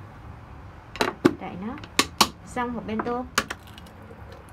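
A plastic lid clicks and rattles shut on a container.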